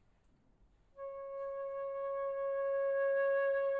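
A flute plays a long, steady, clear note.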